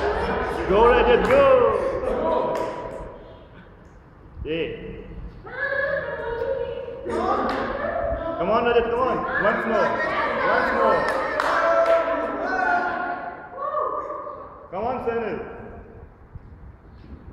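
Young men and women sing and chant together with animation in an echoing room.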